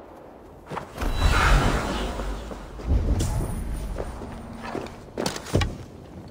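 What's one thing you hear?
A large bird's wings flap in bursts.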